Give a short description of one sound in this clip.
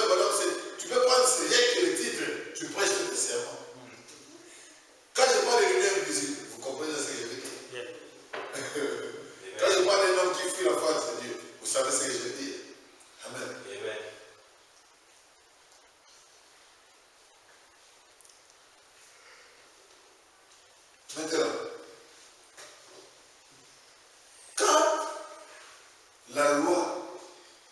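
A man speaks with animation in a room with a slight echo, pausing now and then.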